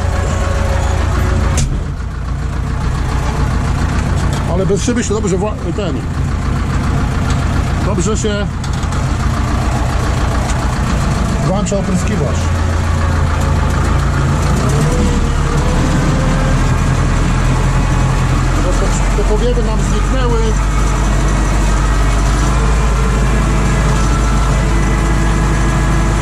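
A tractor engine drones steadily from inside a rattling cab.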